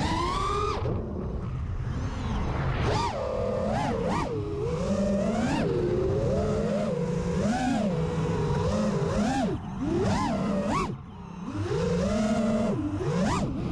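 A drone's motors whine, rising and falling in pitch as it swoops and turns.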